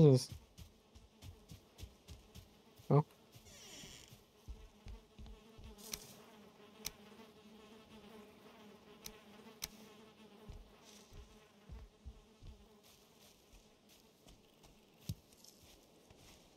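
Footsteps thud softly through grass.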